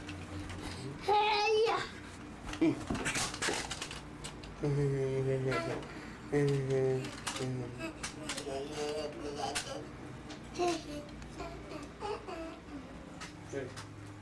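A young boy talks and giggles close by.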